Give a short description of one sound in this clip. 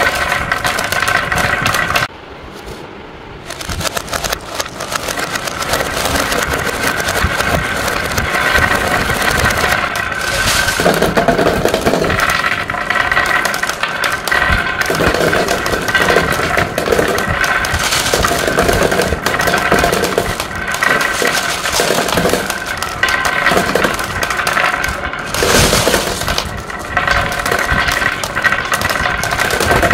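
Glass marbles roll and rattle down wooden tracks.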